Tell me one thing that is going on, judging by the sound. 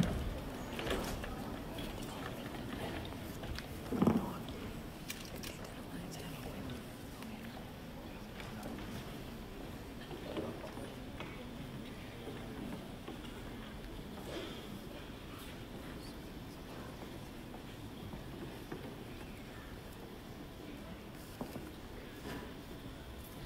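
A large crowd murmurs and chatters in a large echoing hall.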